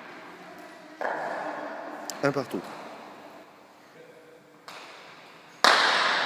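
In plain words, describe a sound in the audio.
A hard ball smacks against a wall and echoes through a large hall.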